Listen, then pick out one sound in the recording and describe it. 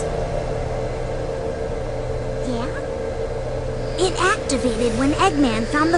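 An aircraft engine hums steadily.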